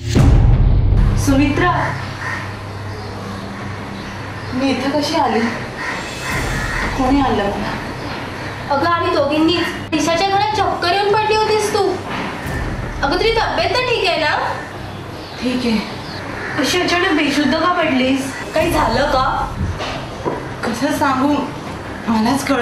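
A young woman speaks with concern, close by.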